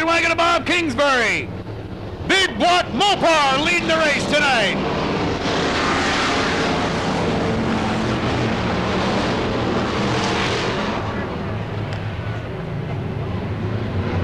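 Several race car engines roar and rumble.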